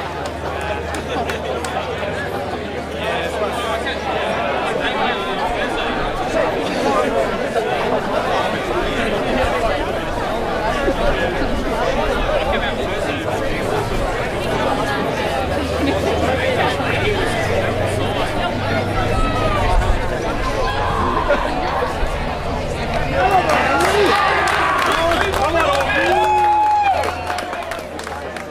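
A crowd of spectators chatters in the distance.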